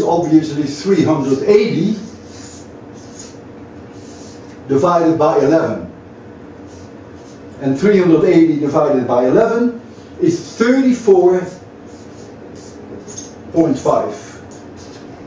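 An elderly man speaks calmly nearby, in short phrases with pauses.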